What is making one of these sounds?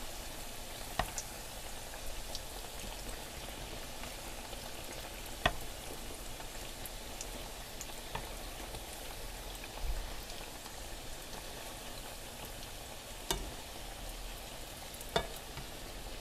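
A metal spoon clinks against a pan.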